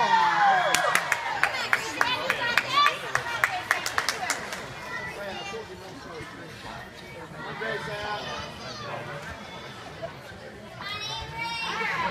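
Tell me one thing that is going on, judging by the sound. Young girls and women chatter in a large echoing hall.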